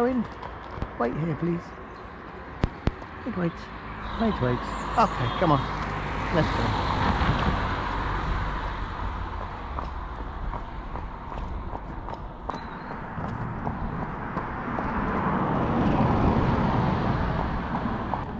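Horse hooves clop on a paved road.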